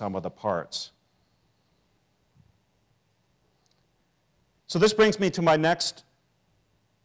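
A middle-aged man speaks calmly into a small microphone close by.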